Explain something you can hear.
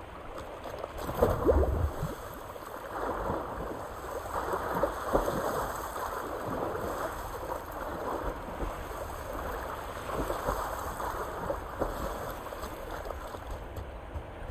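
Water splashes as a swimmer paddles steadily.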